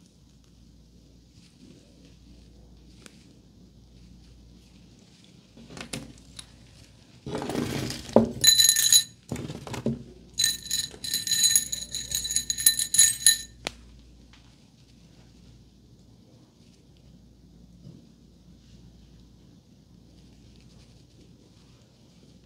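Fingers rustle softly through hair.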